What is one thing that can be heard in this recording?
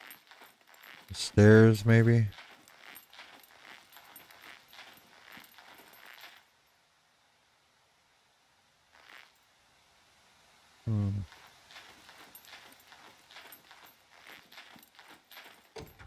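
Footsteps tread steadily across a hard roof.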